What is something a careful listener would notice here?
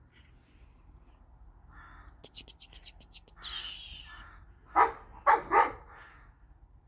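A cat pads softly through grass.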